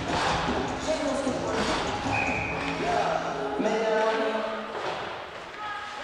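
Players shout across a large echoing rink.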